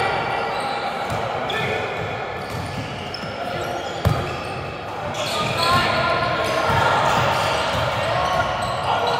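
Sneakers squeak on a gym floor in a large echoing hall.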